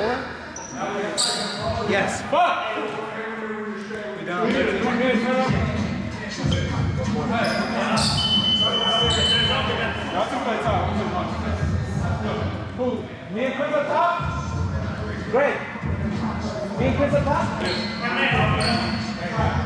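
Several young men chatter in the background.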